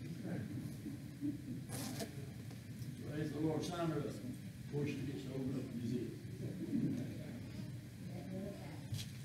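A man speaks calmly into a microphone, heard through loudspeakers in a large echoing hall.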